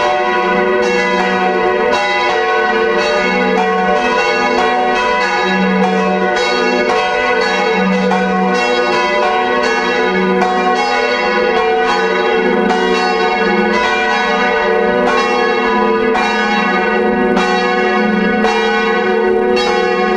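Several large bells swing and ring loudly, their strikes overlapping with a long ringing hum.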